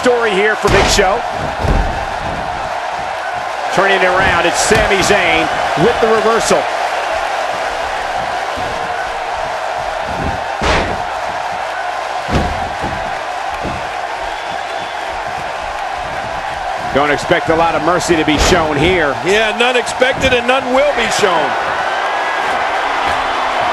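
A large crowd roars steadily in a big echoing arena.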